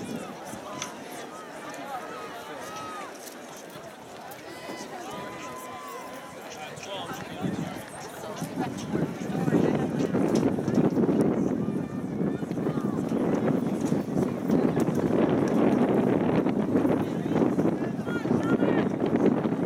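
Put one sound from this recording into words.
A crowd of spectators talks and cheers outdoors, growing louder as the race passes.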